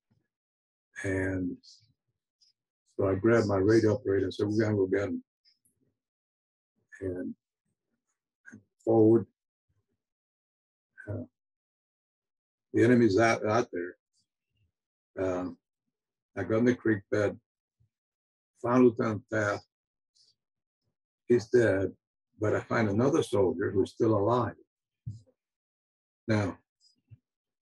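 An elderly man speaks calmly in short bursts with pauses, heard over an online call.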